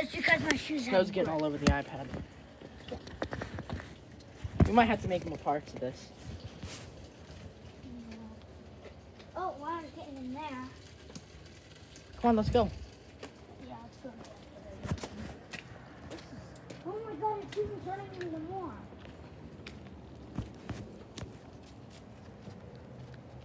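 Sleet and small hail tick and patter on the ground.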